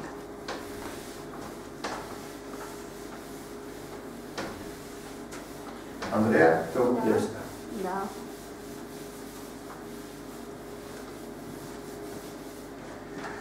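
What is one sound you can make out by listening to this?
A felt eraser rubs across a chalkboard.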